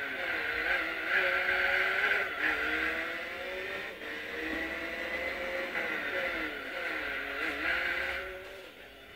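Tyres screech on a track.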